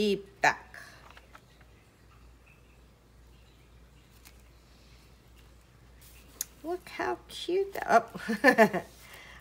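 Paper rustles softly as hands smooth it flat.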